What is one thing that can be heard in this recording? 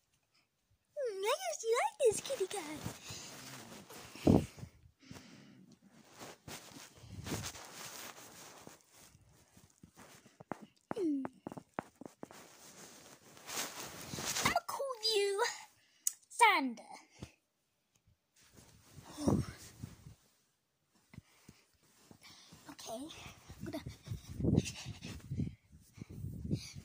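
A young boy talks and squeals excitedly close to a phone's microphone.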